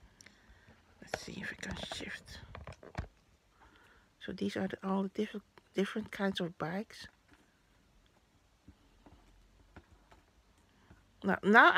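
Paper stickers rustle and crinkle as they are handled.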